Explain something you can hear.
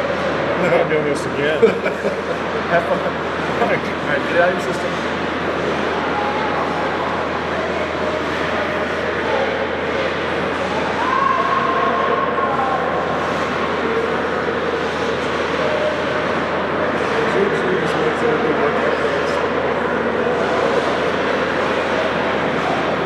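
The sound echoes around a large, hard-walled rink.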